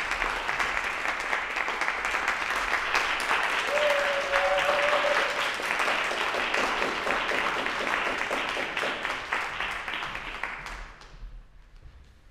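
An audience applauds loudly in a large hall, then the applause dies away.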